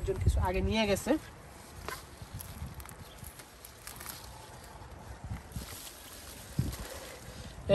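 Plant stems rustle and snap as a man pulls them from the ground.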